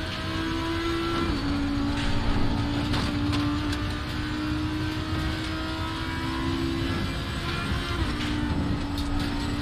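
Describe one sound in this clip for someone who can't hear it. A race car engine roars steadily at high revs, shifting gears now and then.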